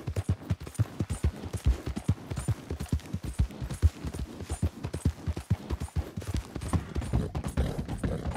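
A horse gallops, its hooves thudding quickly on a dirt track.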